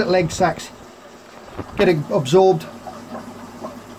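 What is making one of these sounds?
Water trickles and bubbles softly into a tank.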